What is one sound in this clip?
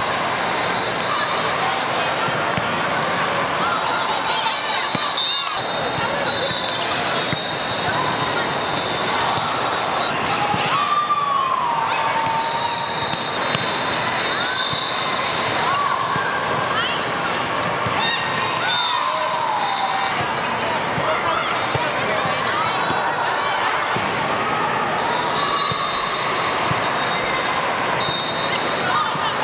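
A crowd of players and spectators chatter and call out in a large echoing hall.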